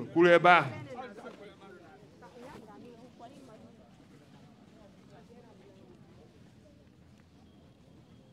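Men and women murmur quietly in the background.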